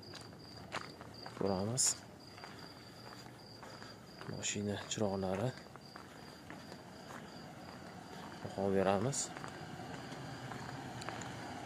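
A car approaches slowly along a street.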